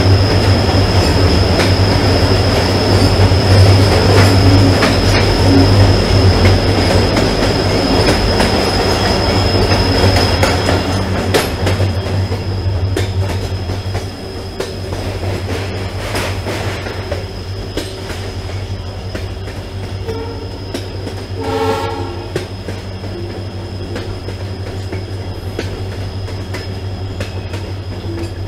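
A train rumbles and clatters along the rails, loud and echoing inside a tunnel, then quieter in the open.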